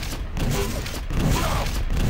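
A rocket explodes with a loud blast.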